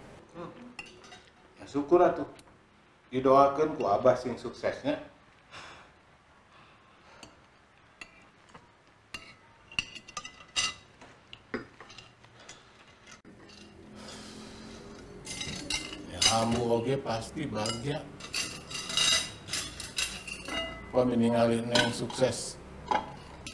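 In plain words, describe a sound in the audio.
Cutlery clinks softly against plates.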